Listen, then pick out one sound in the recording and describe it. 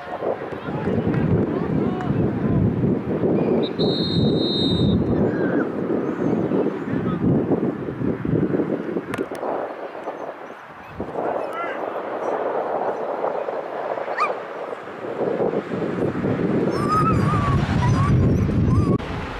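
Young players shout across a wide open field.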